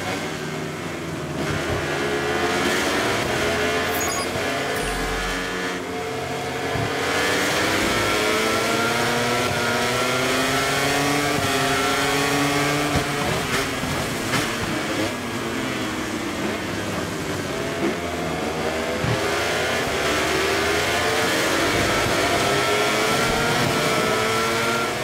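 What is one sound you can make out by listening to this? Racing motorcycle engines whine loudly, rising and falling in pitch as they shift gears.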